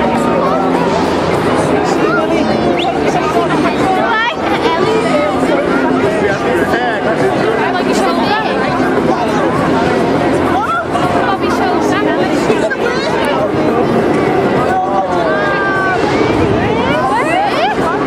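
A large crowd chatters and murmurs close by.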